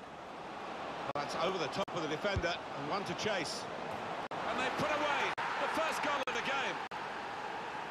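A stadium crowd bursts into loud cheering, then settles.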